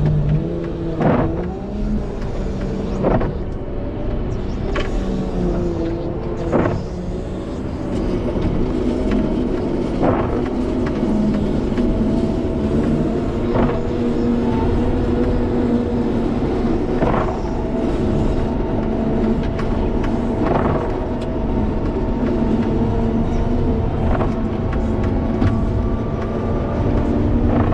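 A heavy loader engine rumbles and whines steadily up close.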